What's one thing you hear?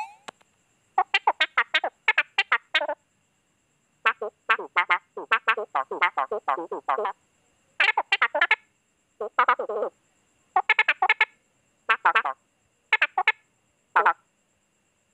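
Quick, chirpy game blips chatter as dialogue text types out.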